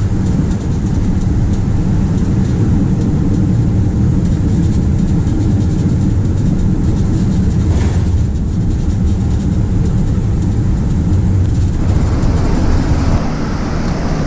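An aircraft engine hums with a steady low roar.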